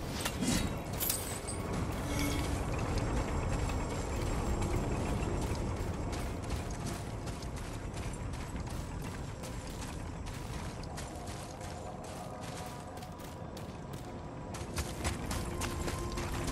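Footsteps crunch on the ground at a steady pace.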